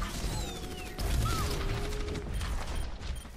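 A heavy blast roars and crackles.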